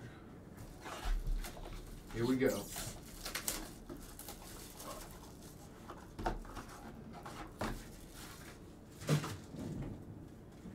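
Cardboard boxes knock and rustle as they are handled.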